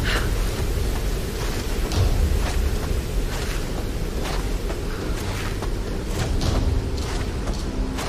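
Hands grip and slide along a rope in quick shuffles.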